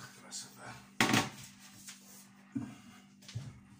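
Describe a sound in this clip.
A metal baking tray clatters and scrapes onto a hard counter.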